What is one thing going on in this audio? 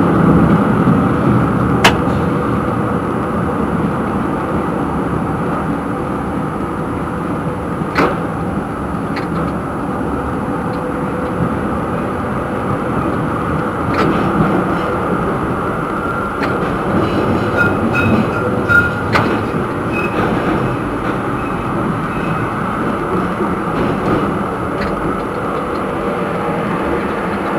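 A tram rumbles steadily along the rails.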